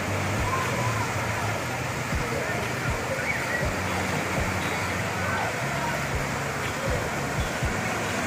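Fountains spray and splash into water.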